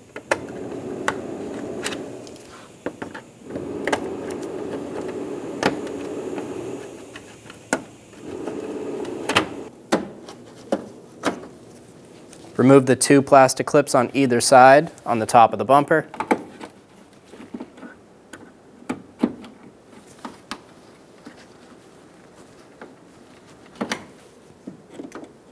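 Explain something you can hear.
Clip pliers pry plastic push clips loose with sharp clicks.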